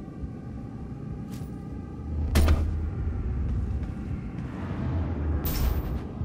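A deep mechanical rumble drones steadily.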